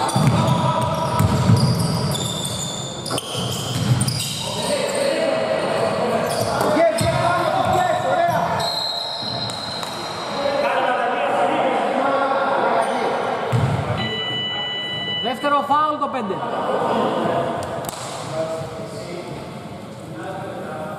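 Players call out to each other across the hall.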